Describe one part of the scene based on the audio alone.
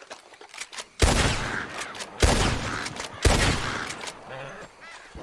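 A rifle fires several loud shots that echo.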